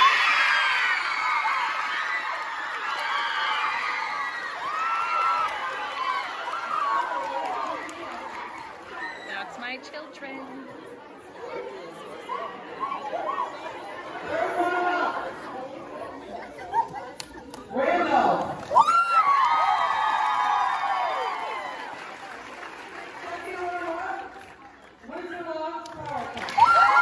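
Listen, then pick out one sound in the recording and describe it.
A woman speaks through a microphone over loudspeakers in a large echoing hall.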